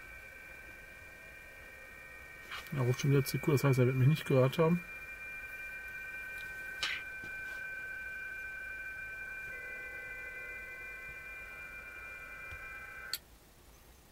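A radio receiver hums with steady, high whistling tones through a small laptop speaker, then cuts off abruptly.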